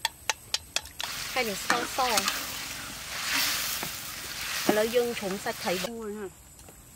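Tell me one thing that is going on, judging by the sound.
Sauce sizzles and bubbles in a hot pan.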